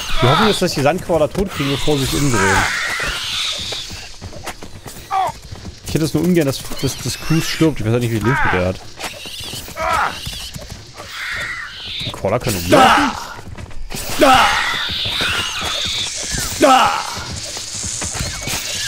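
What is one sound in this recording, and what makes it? A sword slashes and strikes a giant insect's hard shell.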